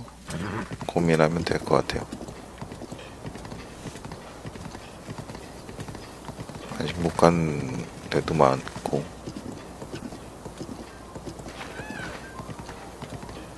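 Horse hooves gallop over dry ground.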